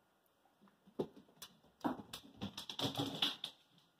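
A dog's claws click on a hard floor.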